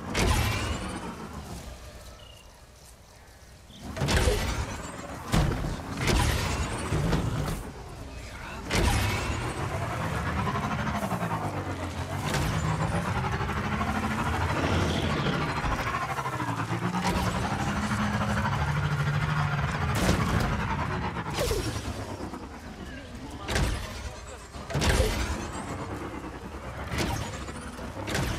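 A hover bike hums as it speeds along.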